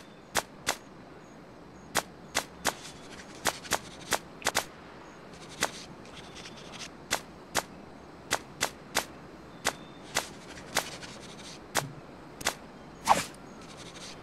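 Short, crisp clicks sound again and again.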